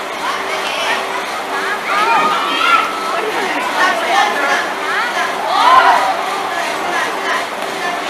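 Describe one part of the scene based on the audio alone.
A crowd of spectators chatters and shouts loudly in a large echoing hall.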